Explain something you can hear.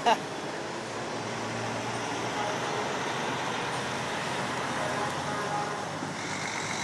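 Large trucks drive past close by with a steady engine rumble and tyre roar.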